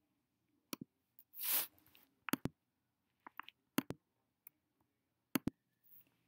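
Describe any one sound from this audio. A small plastic toy door clicks and taps shut.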